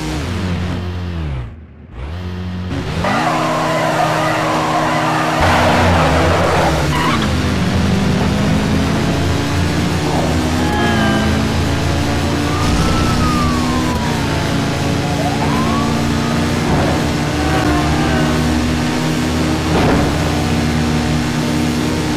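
Motorcycle engines rev loudly and roar as they race away.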